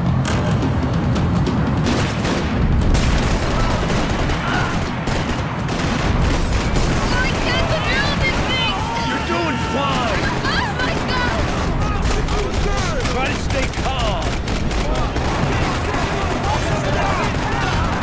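Pistol shots ring out in rapid bursts.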